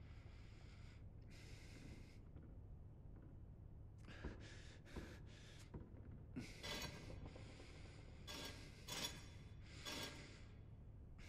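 Heavy metal discs grind and scrape in short bursts as they turn.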